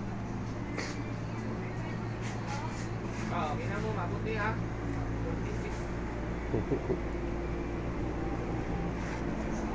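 Electric fans hum and whir steadily nearby.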